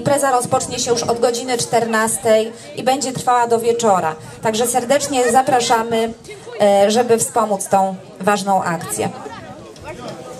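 A brass band plays along with the singer.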